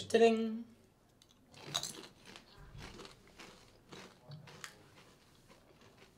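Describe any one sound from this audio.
A young man crunches a chip.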